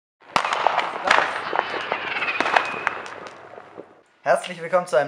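Fireworks crackle and pop in quick bursts.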